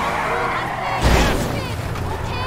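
A car crashes into another car with a loud thud.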